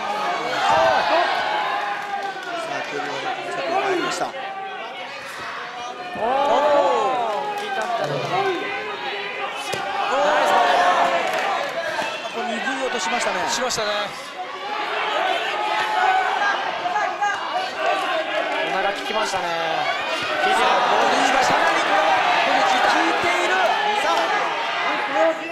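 A crowd cheers and shouts in a large indoor hall.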